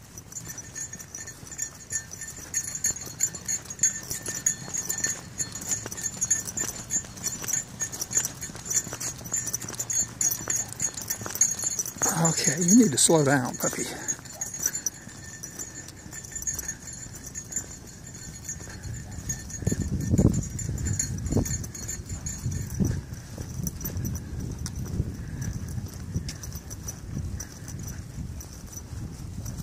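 Footsteps scuff steadily along a path.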